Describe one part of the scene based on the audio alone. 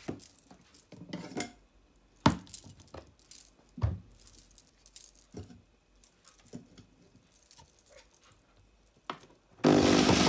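Fruit pieces knock and thud against plastic.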